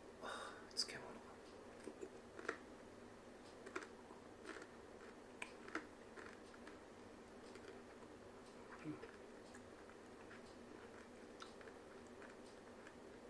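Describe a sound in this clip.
A man chews food with soft, wet smacking sounds.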